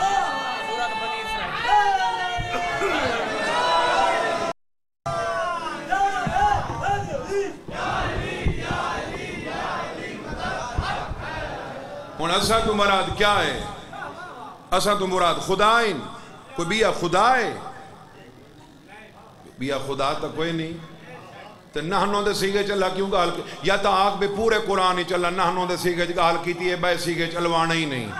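A man speaks with passion into a microphone, his voice carried over a loudspeaker.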